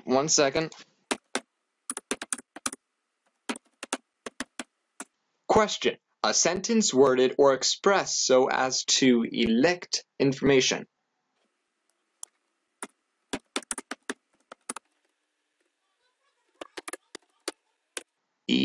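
Keys click as someone types quickly.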